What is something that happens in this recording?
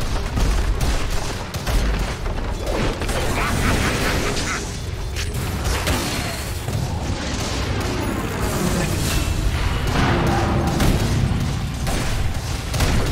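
Game spells and attacks crash and explode in a busy battle.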